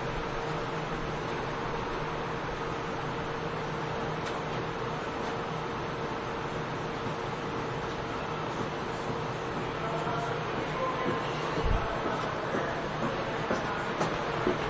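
A stopped train hums steadily while idling.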